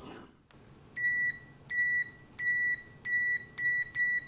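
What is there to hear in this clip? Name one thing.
A multimeter beeps in short, even pulses.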